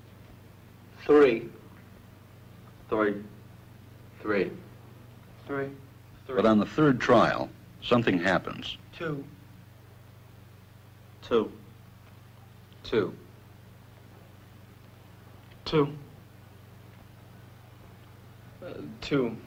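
Young men answer one after another in short, calm words.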